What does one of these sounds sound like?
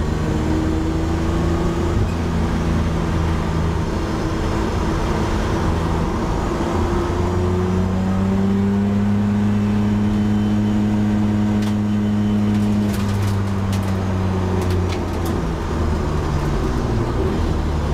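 A race car engine drones loudly from inside the cabin, rising and falling in pitch with the throttle.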